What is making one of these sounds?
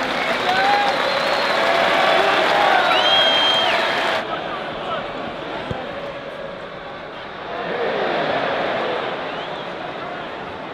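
A large stadium crowd roars and chatters.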